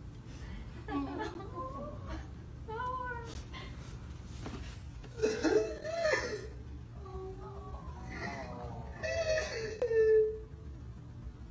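A teenage boy sobs.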